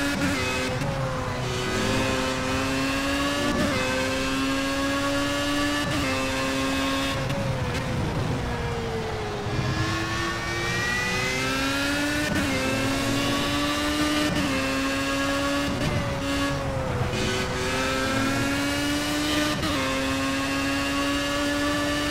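A racing car engine roars at high revs, rising and dropping in pitch with each gear change.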